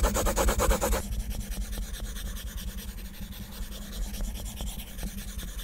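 A plastic stylus scribbles on a glass surface with soft ticking strokes.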